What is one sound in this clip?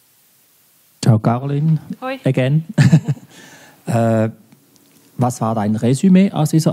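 A young woman speaks to an audience through a microphone.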